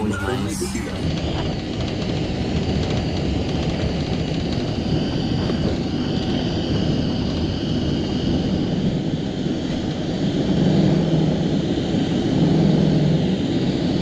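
Wheels rumble over the runway.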